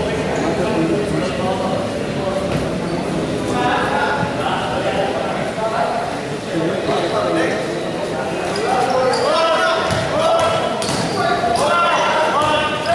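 Young men shout to each other in an echoing hall.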